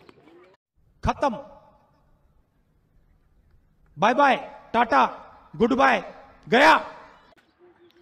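A man speaks forcefully through a microphone and loudspeakers.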